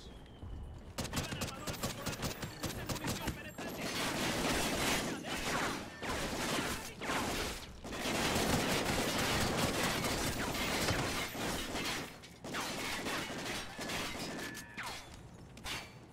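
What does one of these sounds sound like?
Rapid rifle gunfire rattles loudly and echoes.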